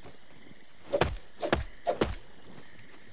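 A wooden spear jabs forward with sharp knocks.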